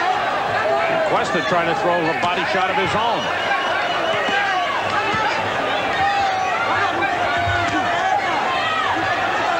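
Gloved punches thud against a boxer's body.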